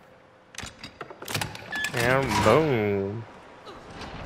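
A metal lock clanks and a heavy door unlatches.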